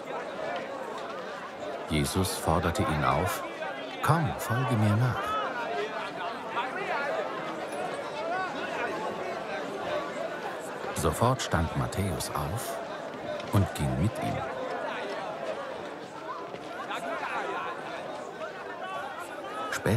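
A crowd of men and women murmurs and chatters at a distance.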